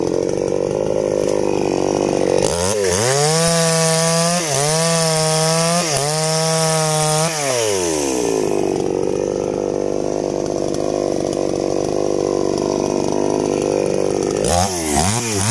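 A chainsaw engine idles steadily.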